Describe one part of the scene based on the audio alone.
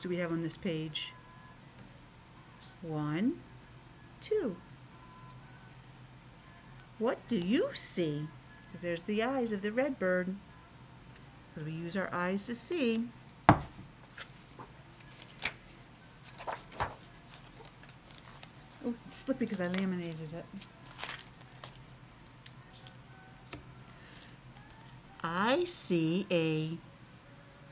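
A middle-aged woman reads aloud with animation, close to the microphone and muffled by a face mask.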